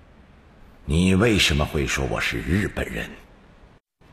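A middle-aged man speaks calmly and firmly, close by.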